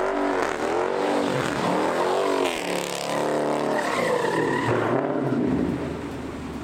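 Tyres screech on pavement as a car spins.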